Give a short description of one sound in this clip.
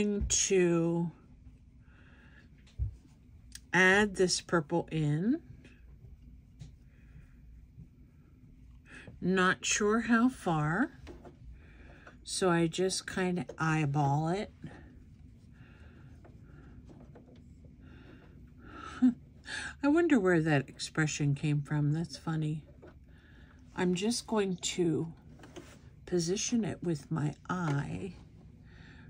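Paper and fabric rustle softly under handling.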